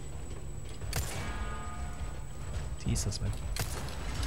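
Gunshots ring out and hit metal armor.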